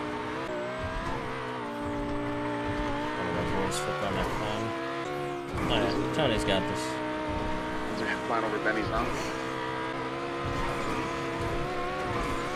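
A sports car engine roars steadily.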